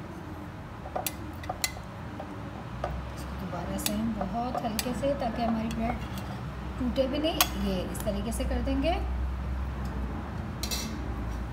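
Utensils clink against a glass dish.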